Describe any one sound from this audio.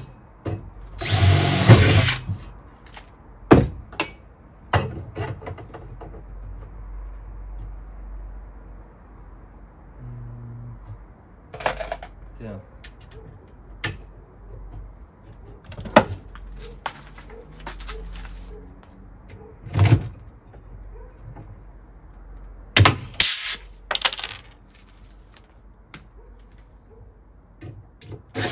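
Metal parts clank and knock together.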